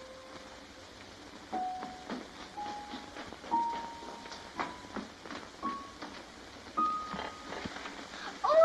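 A piano plays single notes, one after another, slowly climbing in pitch.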